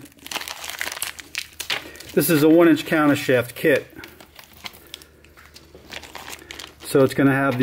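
A plastic bag crinkles.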